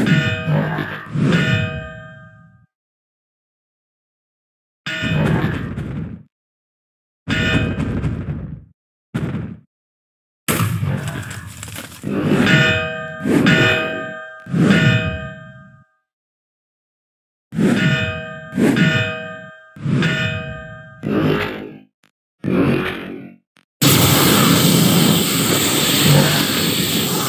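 Blades clash and slash in bursts of ringing game combat sounds.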